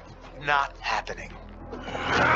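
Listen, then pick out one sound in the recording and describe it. A young man speaks with disbelief, close by.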